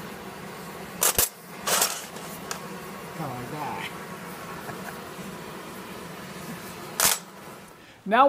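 Metal wrenches clatter onto a metal surface.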